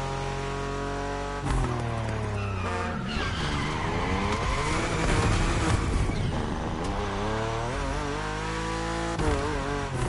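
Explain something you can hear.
A racing car engine roars at high revs and shifts gears.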